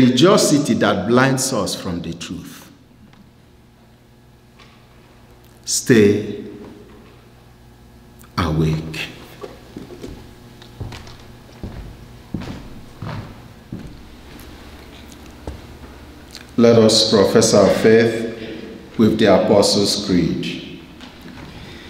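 A man speaks calmly into a microphone in a reverberant hall.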